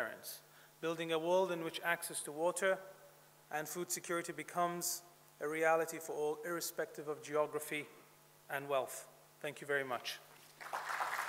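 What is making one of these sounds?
A man speaks calmly into a microphone over a loudspeaker in a large hall.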